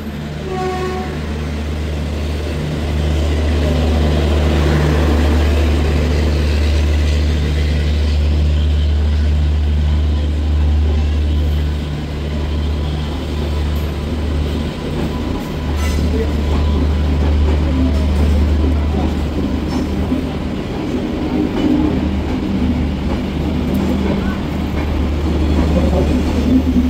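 A diesel locomotive idles with a low, steady drone.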